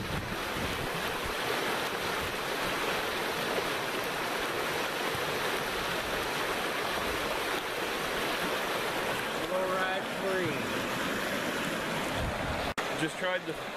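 A river rushes and splashes nearby.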